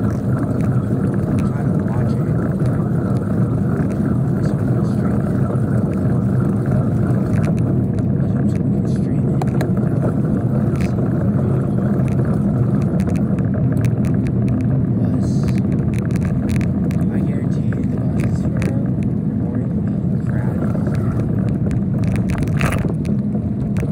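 Tyres roll steadily over rough asphalt.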